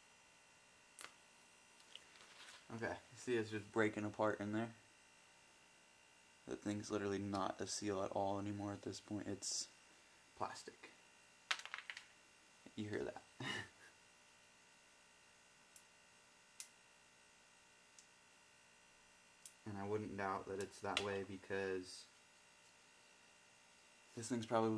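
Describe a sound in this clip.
Small metal parts click and clink lightly.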